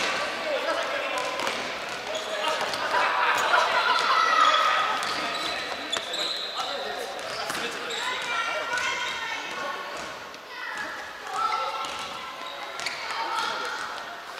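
Children shout and call out to each other across a large echoing hall.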